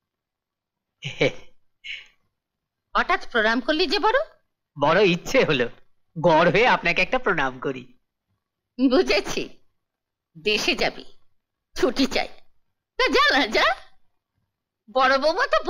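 An elderly woman speaks with animation, close by.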